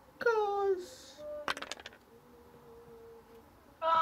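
Dice clatter as they roll.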